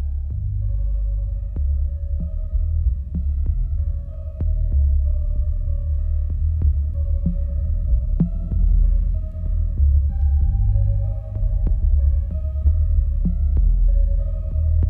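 Electronic music with a deep bass and a sharp beat plays from a record on a turntable.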